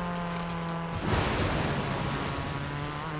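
Water splashes loudly as a car drives through a puddle.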